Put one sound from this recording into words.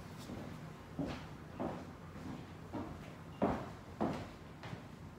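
Footsteps thud across a floor.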